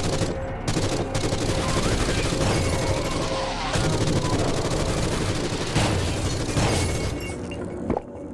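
Rapid gunfire blasts loudly.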